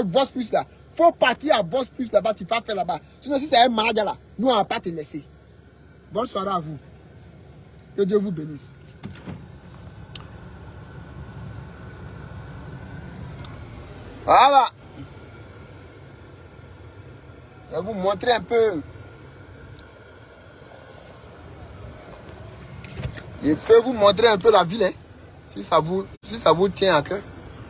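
A man talks with animation close to a phone microphone, in bursts with pauses.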